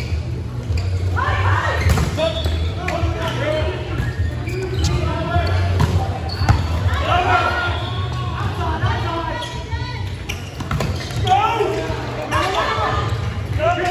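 Young men and women call out and shout to each other in a large echoing hall.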